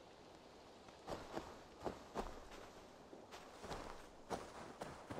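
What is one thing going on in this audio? Footsteps crunch on a dirt path at a walking pace.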